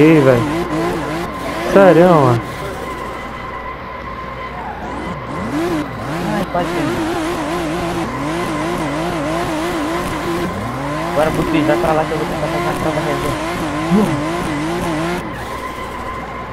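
A car engine revs hard, its pitch rising and falling quickly.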